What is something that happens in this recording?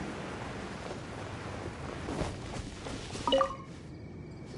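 Wind rushes past as a figure glides through the air.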